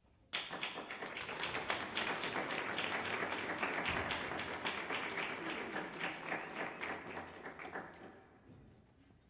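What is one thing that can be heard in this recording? An audience claps loudly, then the applause dies away.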